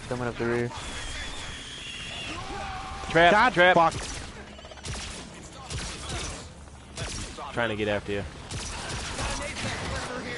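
Energy guns fire in sharp bursts.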